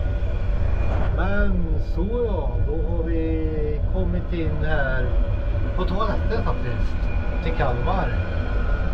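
A man talks animatedly close to the microphone.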